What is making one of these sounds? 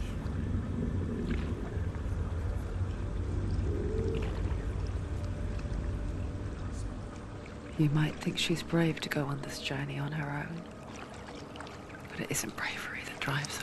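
Water sloshes and splashes as a person wades through it.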